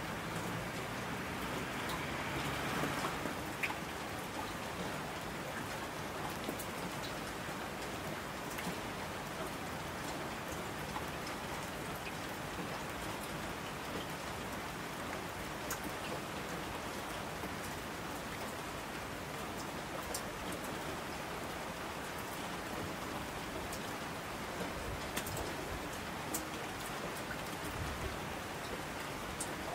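A mountain stream rushes and roars.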